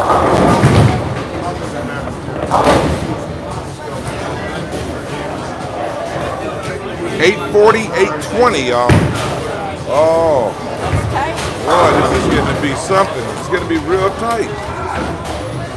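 Men talk loudly nearby in a large echoing hall.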